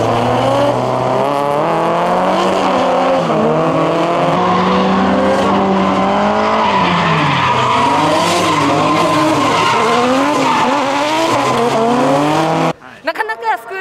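Car engines rev hard and whine.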